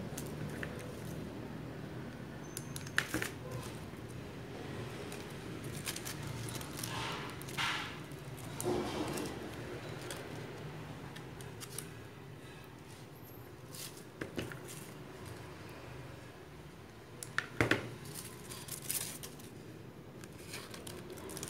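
Paper leaves rustle and crinkle in handling.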